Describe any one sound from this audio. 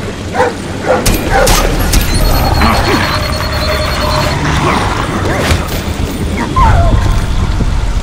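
A struggle erupts with heavy thuds and blows.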